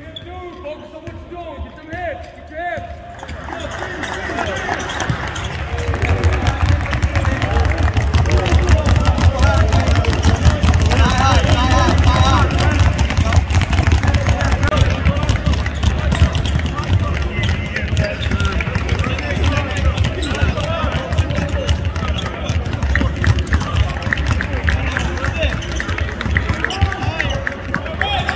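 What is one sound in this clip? Basketballs bounce on a hardwood floor.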